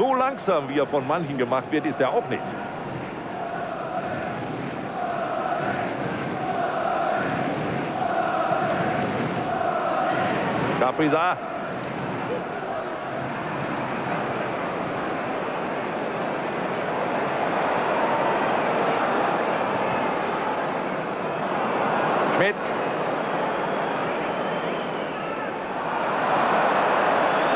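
A large stadium crowd roars and chants steadily, rising louder near the end.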